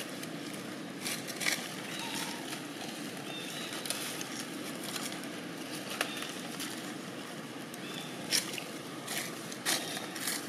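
Dry leaves rustle and crackle as a baby monkey moves through them.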